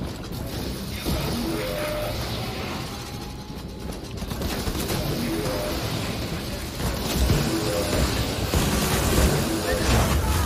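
A game gun fires in rapid bursts.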